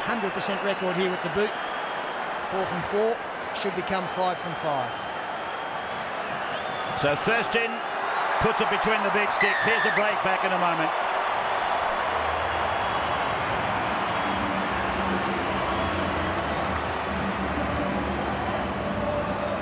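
A large stadium crowd roars, swelling into loud cheering.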